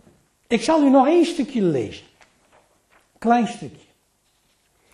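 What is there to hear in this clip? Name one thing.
An elderly man reads out calmly into a microphone.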